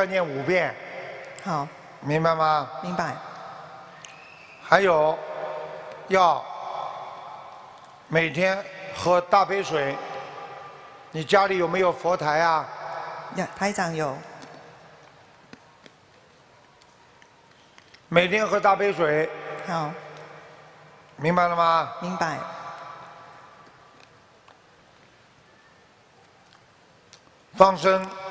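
An older man speaks calmly into a microphone in a large echoing hall.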